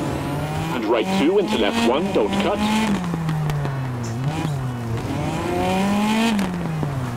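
Tyres crunch and spray over loose gravel.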